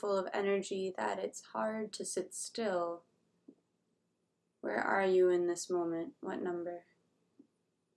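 A young woman speaks calmly and softly into a nearby microphone, then falls silent.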